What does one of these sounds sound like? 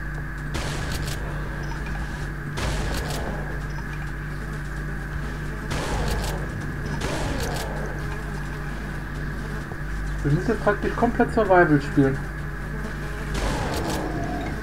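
A shotgun fires in loud, sharp blasts.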